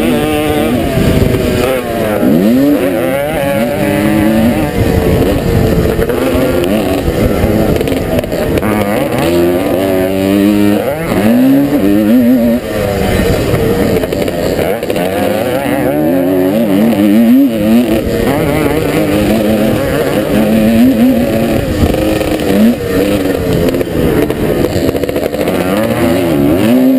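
A dirt bike engine revs loudly up close, rising and falling in pitch as the gears change.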